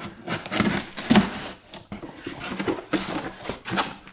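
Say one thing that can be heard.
Cardboard box flaps rustle as they are opened.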